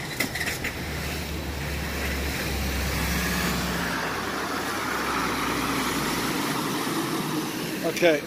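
A pickup truck drives through deep water, splashing loudly.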